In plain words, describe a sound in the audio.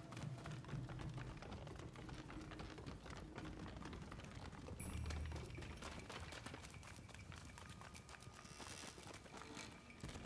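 Footsteps patter quickly across a wooden roof.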